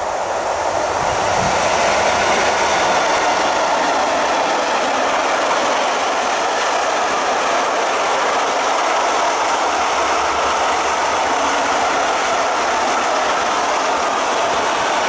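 Freight wagons rumble and clatter past on the rails close by.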